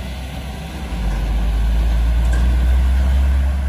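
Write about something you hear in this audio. A truck engine roars loudly as it passes close by.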